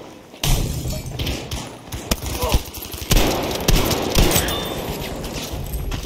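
A pump-action shotgun fires sharp, booming blasts.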